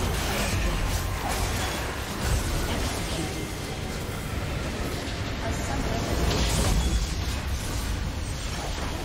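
Magic spells crackle and whoosh in a hectic fight.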